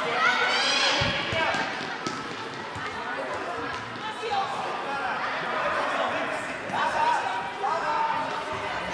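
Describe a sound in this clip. Young girls shout and cheer in a large echoing hall.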